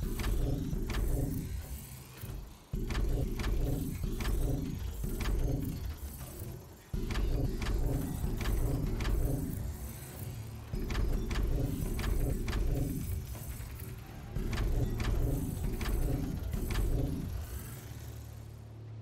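Short building placement clicks sound again and again.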